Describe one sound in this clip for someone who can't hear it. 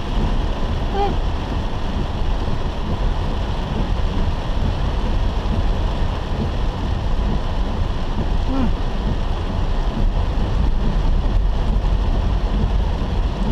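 A car's engine hums low and steady while driving.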